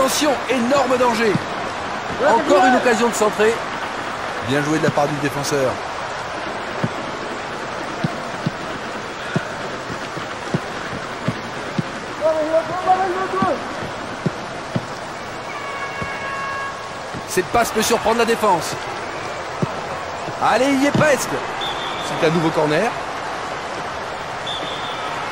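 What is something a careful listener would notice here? A stadium crowd murmurs and cheers steadily in the background.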